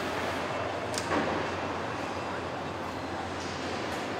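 A power tool clicks and whirs briefly.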